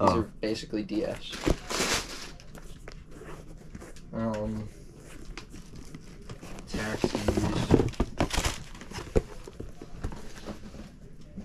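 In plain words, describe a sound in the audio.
Cardboard shoe boxes rustle and knock as they are handled.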